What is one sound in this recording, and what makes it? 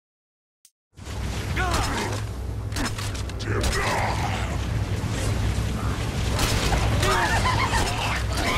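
Guns fire rapidly.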